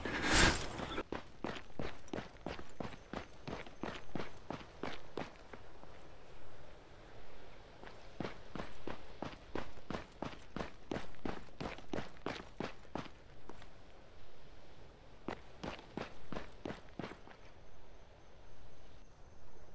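Footsteps crunch quickly and steadily on hard ground.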